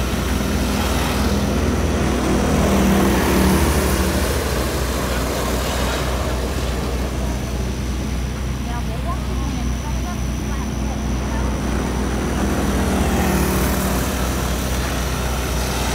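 Small racing kart engines roar loudly, rising as they pass close and fading as they move away.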